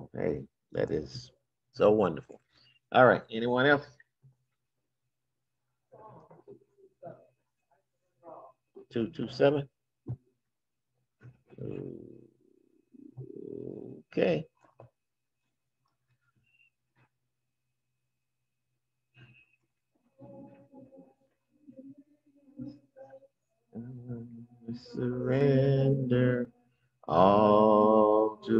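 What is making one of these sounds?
An older man speaks calmly through an online call microphone.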